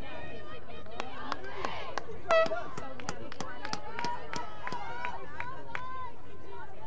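Young women clap their hands.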